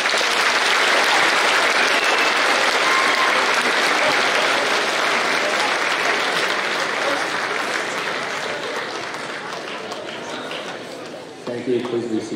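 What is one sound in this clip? An audience applauds in a large hall, fading slowly.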